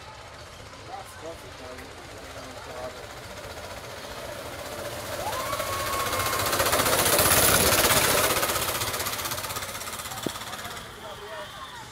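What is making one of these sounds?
Go-kart engines buzz as the karts approach, roar past close by and fade away.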